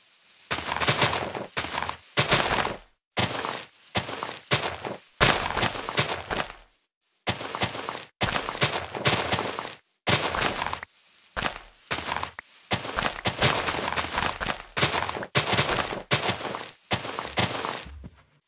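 Grass rustles and crunches as it is broken.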